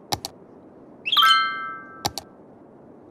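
A short electronic chime rings.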